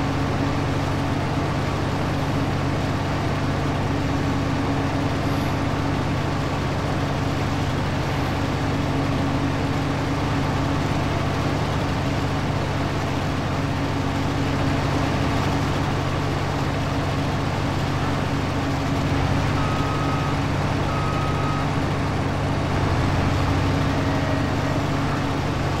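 A harvester chops and blows crop into a trailer with a rushing noise.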